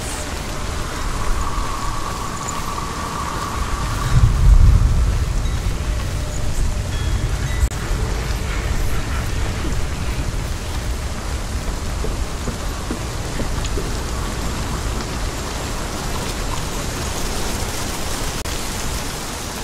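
Footsteps rustle through leafy undergrowth.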